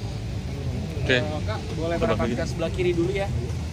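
A group of young people chatter nearby.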